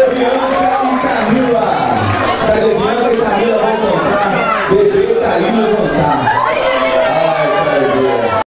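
A live band plays loudly through amplifiers.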